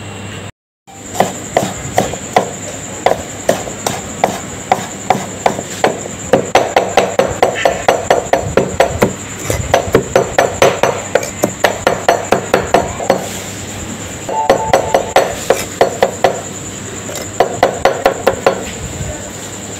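A cleaver chops rapidly on a hard board, knocking in quick bursts.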